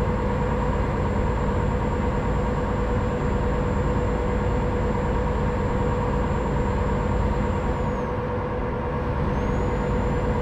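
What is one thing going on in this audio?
Tyres roll with a steady hum on the road.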